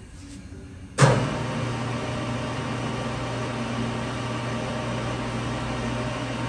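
A lathe motor starts with a thump and runs with a steady hum and whir.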